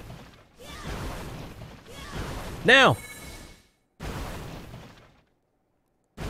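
Video game explosions crackle and thump in quick bursts.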